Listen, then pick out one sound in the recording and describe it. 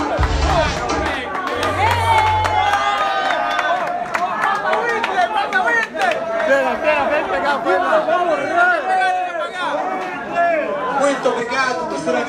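Young men cheer and shout excitedly.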